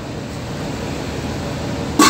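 Food sizzles in a pan.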